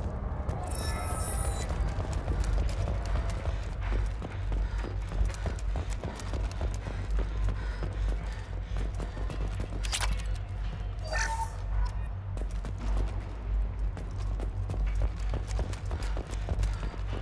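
Heavy footsteps clank steadily on a metal floor.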